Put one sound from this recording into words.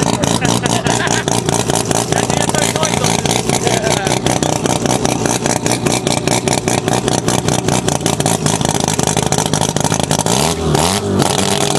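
A race car engine idles loudly with a rough, pulsing rumble.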